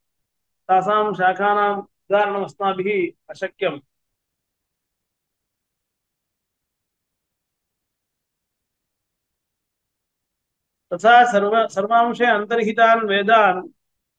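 A man speaks calmly and closely into a microphone, pausing in between.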